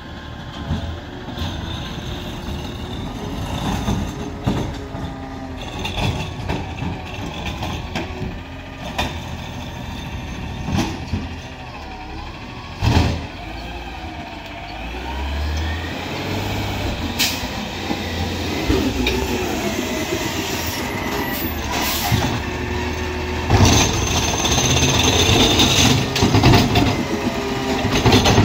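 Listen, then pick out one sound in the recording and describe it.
A garbage truck's diesel engine rumbles and grows louder as it approaches.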